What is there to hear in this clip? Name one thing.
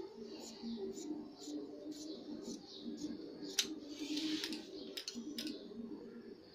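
Scissors snip and crunch through cloth in short repeated cuts.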